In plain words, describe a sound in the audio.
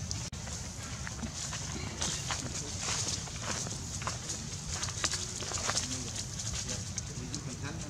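Dry leaves rustle and crunch as monkeys scamper across the ground.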